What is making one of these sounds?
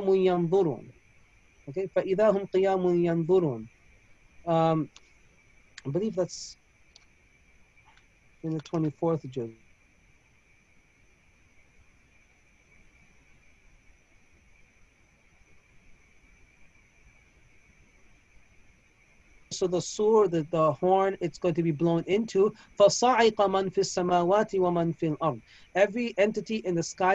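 A man speaks calmly through a microphone on an online call, pausing often.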